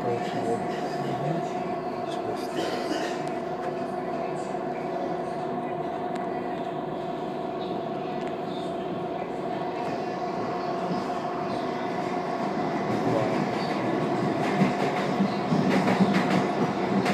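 An electric commuter train runs on the rails, heard from inside a carriage.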